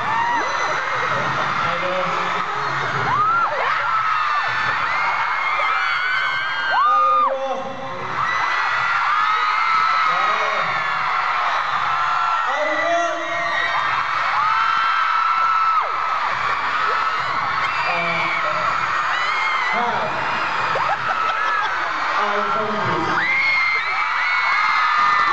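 A crowd of young women screams and cheers loudly in a large echoing hall.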